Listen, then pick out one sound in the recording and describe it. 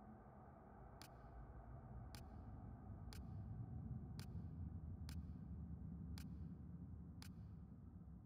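Short soft clicks sound as a menu selection moves from item to item.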